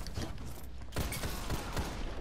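A heavy shotgun blast booms.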